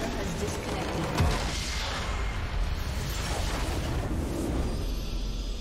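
A large structure explodes with a deep rumbling boom.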